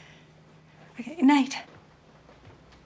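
An elderly woman speaks warmly nearby.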